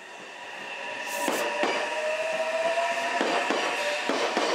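A train rumbles and clatters past close by.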